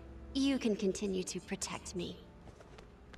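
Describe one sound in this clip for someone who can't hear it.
A young woman speaks softly and warmly.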